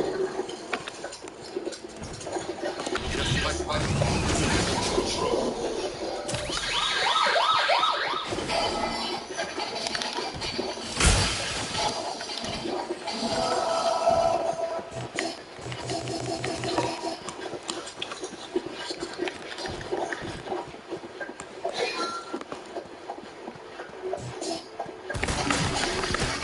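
Armoured footsteps thud steadily as a game character runs.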